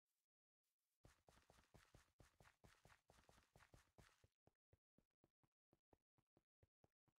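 Footsteps patter quickly over grass.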